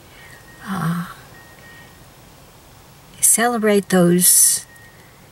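An older woman talks calmly, close up.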